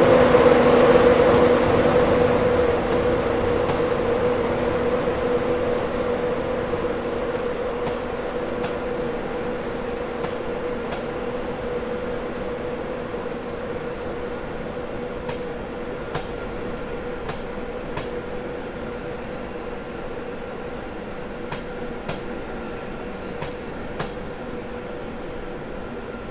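A train rolls past close by with a steady hum that slowly fades.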